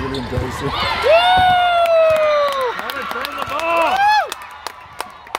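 Young women shout and cheer loudly in a large echoing hall.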